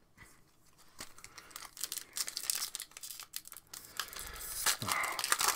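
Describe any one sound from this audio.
Cards rustle and flick as they are handled.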